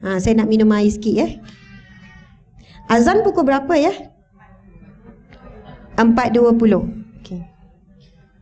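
A young woman speaks calmly into a microphone through a loudspeaker, in an echoing hall.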